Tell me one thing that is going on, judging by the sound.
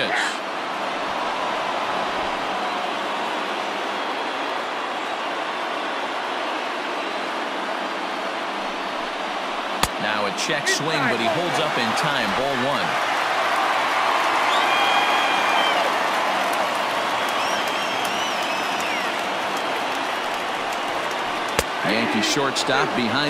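A stadium crowd murmurs steadily.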